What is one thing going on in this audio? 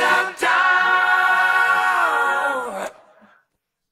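Music from a record plays and ends on a long held chord.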